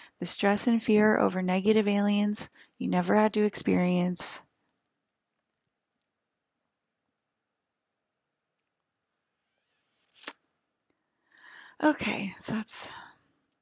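A woman talks calmly and close to a microphone.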